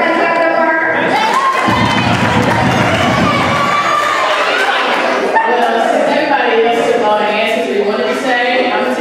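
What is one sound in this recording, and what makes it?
A young woman speaks into a microphone over a loudspeaker with animation.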